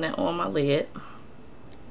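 A young woman speaks briefly and close by.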